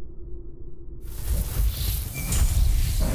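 A glowing energy shield hums and crackles.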